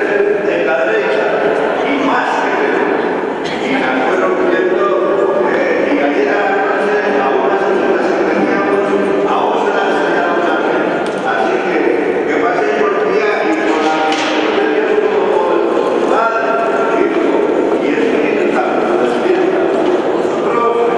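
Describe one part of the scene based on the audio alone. A group of men sing together in a large echoing hall.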